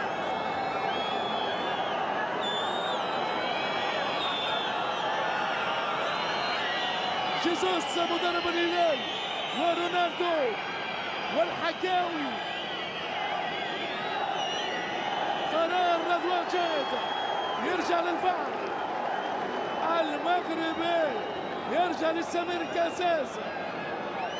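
A large stadium crowd roars and murmurs steadily outdoors.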